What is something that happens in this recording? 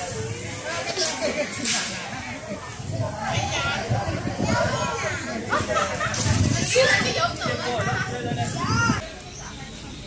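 A crowd of men and women chatters outdoors.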